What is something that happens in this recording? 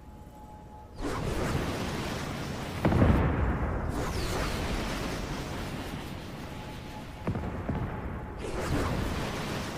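A rocket launcher fires with a whoosh.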